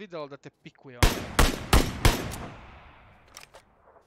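A rifle fires several quick shots that ring out and fade.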